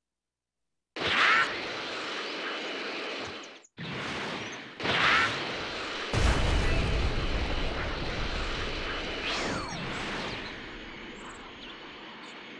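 A loud whoosh of rushing wind sweeps past as a figure flies fast.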